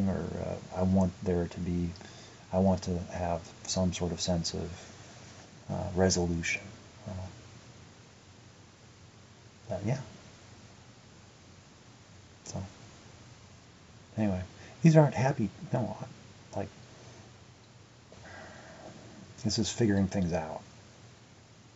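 A young man talks calmly up close, in bursts with pauses.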